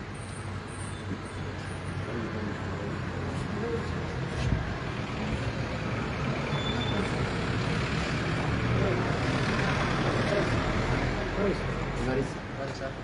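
A crowd of people murmurs and talks in the background.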